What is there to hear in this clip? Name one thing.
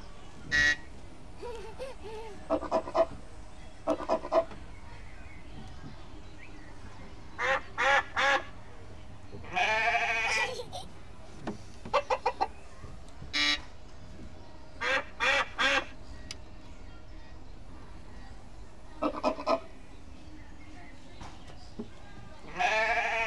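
A young child squeals and laughs close by.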